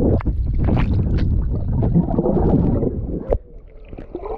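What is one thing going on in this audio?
Air bubbles burst and gurgle underwater.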